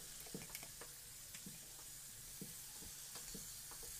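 A dumpling drops into hot oil with a hiss.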